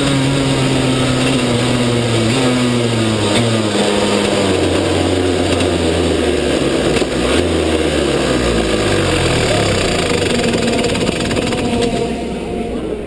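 A kart engine buzzes loudly up close, rising and falling in pitch as it slows down.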